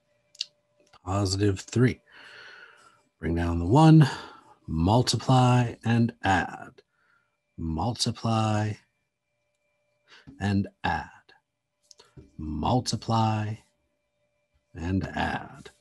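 A man speaks calmly into a close microphone, in short phrases with pauses.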